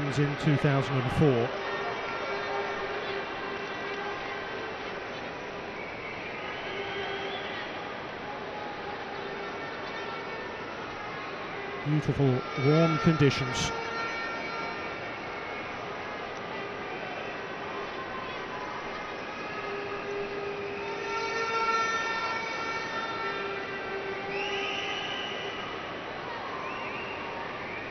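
A large stadium crowd murmurs and cheers steadily in the open air.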